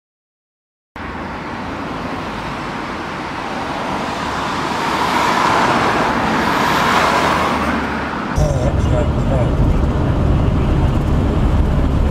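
A car drives fast with steady road and wind noise.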